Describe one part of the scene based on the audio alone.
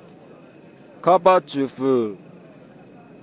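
A man speaks loudly and clearly, close by.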